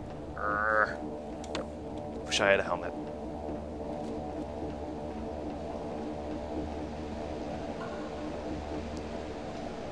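A teleporter hums with a steady, low electric drone.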